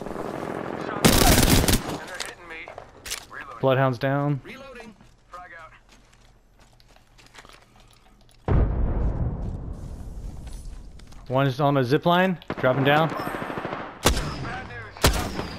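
Gunshots crack in quick, loud bursts.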